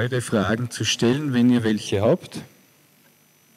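A middle-aged man speaks with animation into a microphone, heard over a loudspeaker in a hall.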